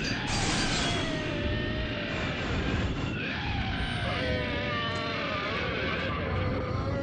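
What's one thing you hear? A ghostly voice moans and wails eerily.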